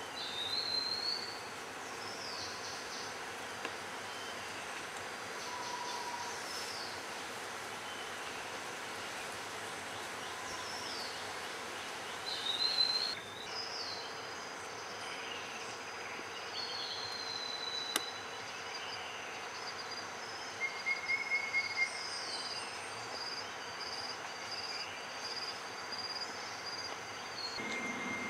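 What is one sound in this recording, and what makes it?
Birds whistle and chirp in short, high calls all around.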